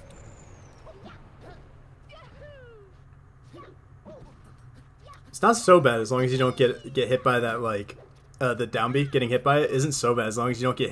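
Cartoonish fighting game sound effects swish and thump.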